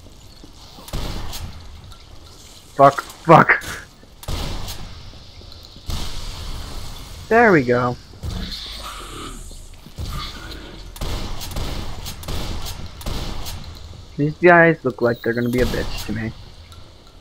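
A shotgun fires loud booming blasts, one at a time.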